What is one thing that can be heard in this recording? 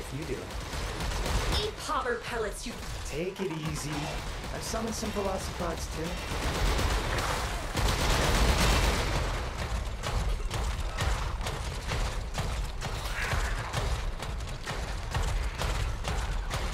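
A mech's jet thrusters roar with a deep rumble.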